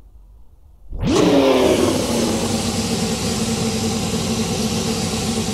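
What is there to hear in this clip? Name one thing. A racing car engine roars loudly and steadily.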